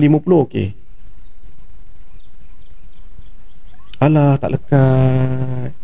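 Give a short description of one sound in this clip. A young man talks loudly and with animation into a microphone, close by.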